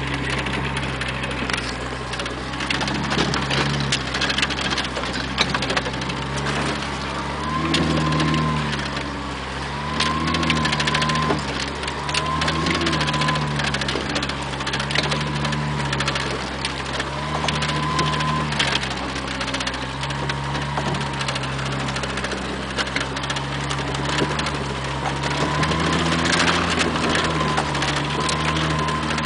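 Tyres crunch over dirt and stones.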